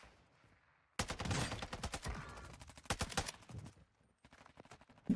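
An assault rifle fires in rapid full-auto bursts.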